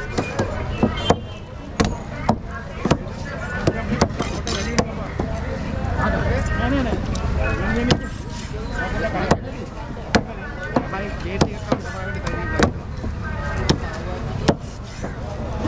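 A heavy knife chops through fish onto a wooden board with sharp thuds.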